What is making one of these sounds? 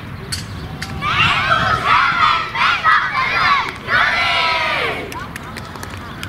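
A group of young boys shout and cheer together outdoors.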